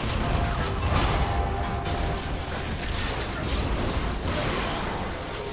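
Magic spells crackle and boom in a video game battle.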